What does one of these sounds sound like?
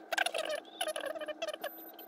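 Metal probes tap lightly against a circuit board.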